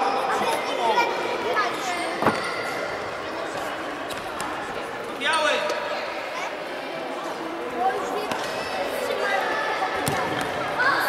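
A ball thuds as it is kicked on a hard floor.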